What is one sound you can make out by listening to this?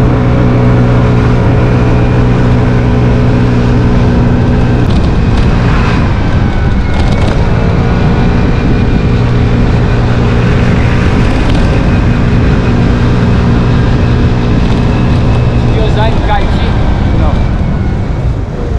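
Tyres roll on asphalt with a steady rush.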